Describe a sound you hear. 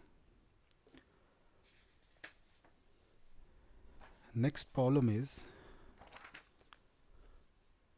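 Sheets of paper rustle as they are moved.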